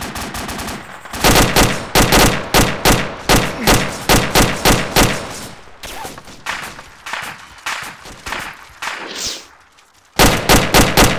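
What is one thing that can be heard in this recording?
Rifle shots crack in quick bursts, with echoes rolling after them.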